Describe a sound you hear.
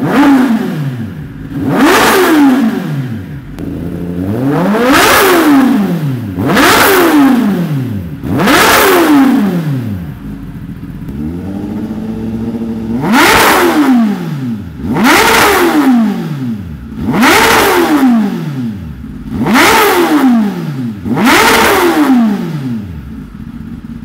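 An inline-four sport bike revs hard in sharp bursts through an aftermarket exhaust.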